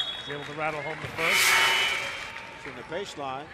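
A crowd cheers loudly in an echoing gym.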